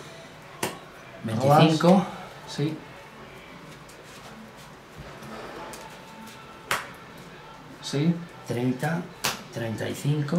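Playing cards tap and slap onto a table.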